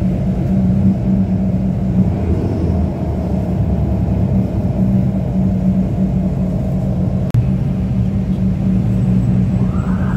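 Motorbikes and cars pass by on the road.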